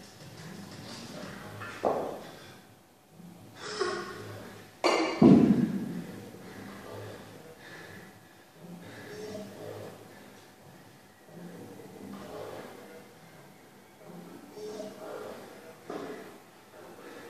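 A man breathes hard and grunts with effort.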